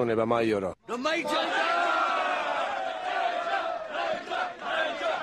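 A crowd of men cheer and shout together in an echoing room.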